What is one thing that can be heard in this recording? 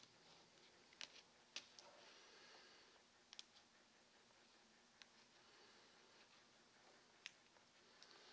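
Small objects tap lightly on a hard surface.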